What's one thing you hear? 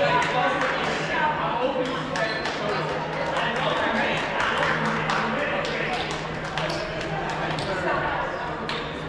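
Many people talk and call out across a large echoing gym.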